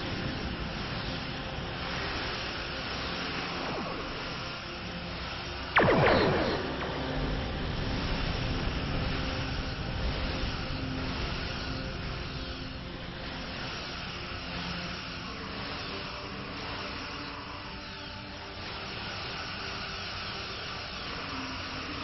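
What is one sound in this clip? Laser weapons fire in repeated bursts.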